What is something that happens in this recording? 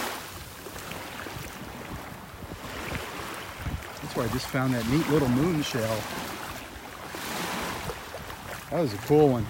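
Small waves lap and splash gently in shallow water.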